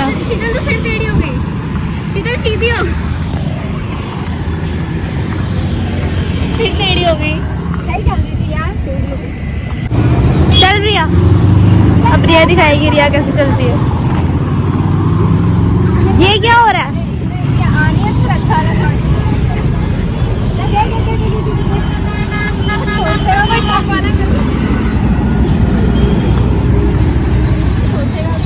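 Young women talk and laugh close by, outdoors.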